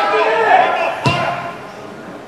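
A football is struck hard with a single thud.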